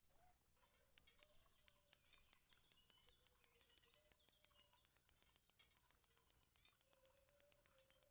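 A fishing reel clicks rapidly as its line is wound in.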